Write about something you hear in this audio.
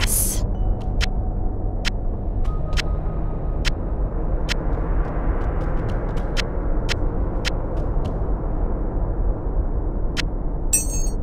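Short, sharp clicks sound again and again as items are picked up.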